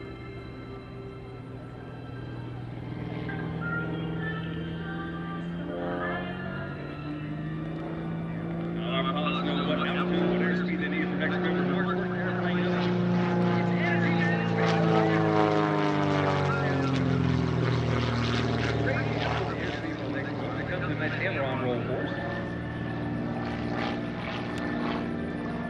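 A propeller plane's engine drones overhead, rising and falling in pitch as it swoops and passes.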